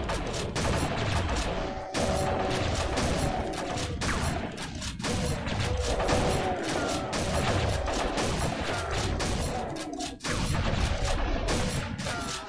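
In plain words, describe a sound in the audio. Shotgun blasts boom again and again in quick succession.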